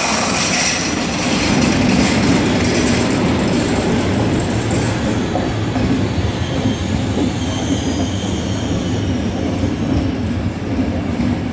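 Train wheels clatter and rumble over the rails as passenger cars roll by.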